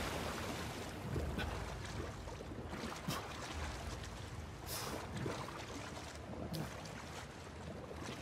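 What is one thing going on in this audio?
Water splashes around a person swimming.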